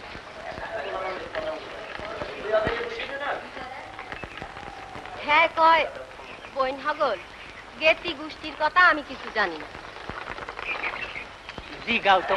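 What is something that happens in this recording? A man speaks loudly and with animation outdoors.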